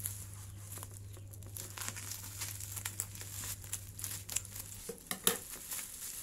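Bubble wrap crinkles and rustles under a hand.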